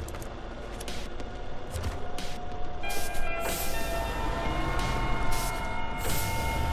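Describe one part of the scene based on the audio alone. Truck tyres crunch through snow.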